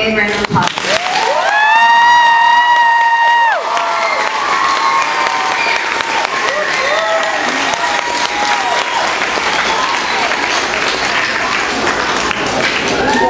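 A crowd of children chatters and cheers.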